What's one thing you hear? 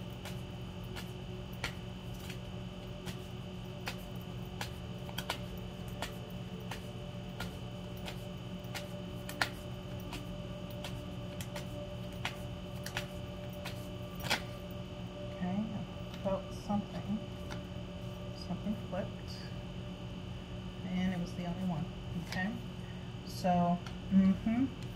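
Cards riffle and snap as a deck is shuffled.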